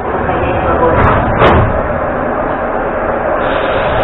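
Subway doors slide shut with a thud.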